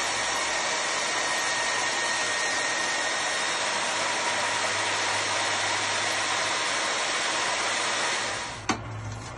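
A core drill grinds loudly through concrete with a steady whine.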